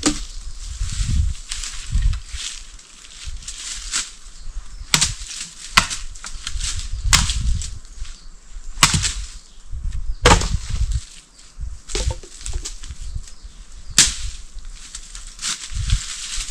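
A man chops at undergrowth with sharp, repeated blows.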